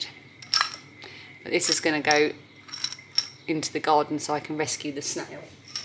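A lid twists on a glass jar.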